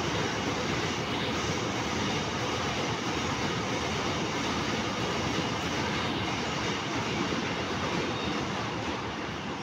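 A long freight train rumbles and clatters steadily along the tracks.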